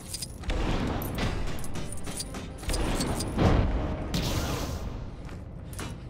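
Punches and energy blasts crack and thud in quick bursts.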